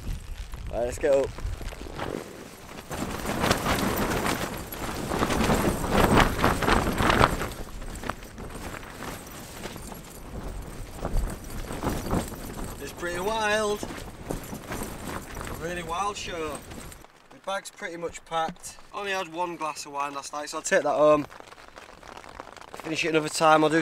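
A man speaks close up with animation.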